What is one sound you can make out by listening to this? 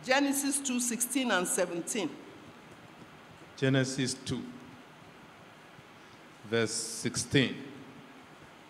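An elderly woman speaks slowly and calmly into a microphone in an echoing hall, pausing between phrases.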